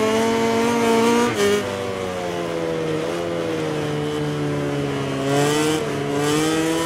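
A racing motorcycle engine winds down as the bike brakes into a corner.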